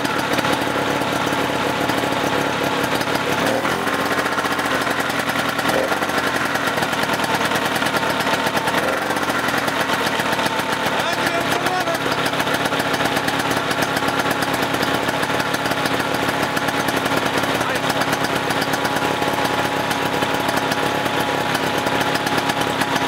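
A small engine runs loudly and roughly close by.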